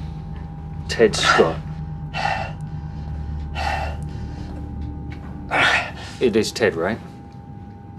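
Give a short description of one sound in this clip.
A man groans and whimpers in pain.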